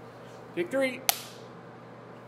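A clapperboard snaps shut.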